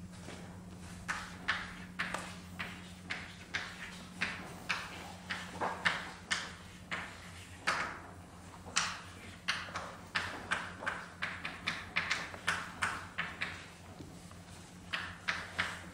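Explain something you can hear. Chalk taps and scratches on a chalkboard.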